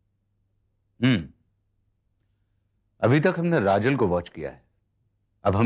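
A man speaks urgently, close by.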